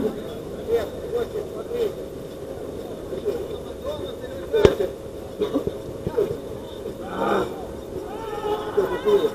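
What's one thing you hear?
Men shout and call to each other across an outdoor pitch.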